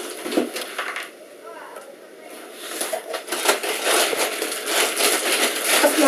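Plastic wrap rustles and crinkles.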